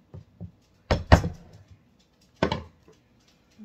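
A spoon knocks sharply against a glass dish.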